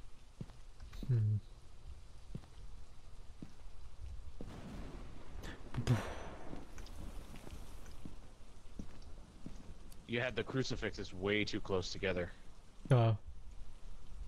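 A young man speaks into a microphone in short bursts.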